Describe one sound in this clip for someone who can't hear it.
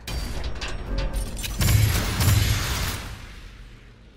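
A metal crate lid creaks open.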